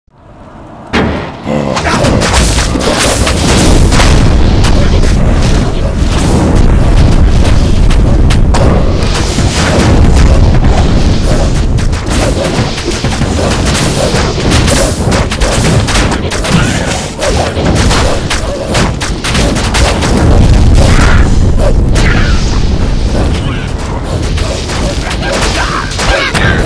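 Weapons clash and thud in rapid combat.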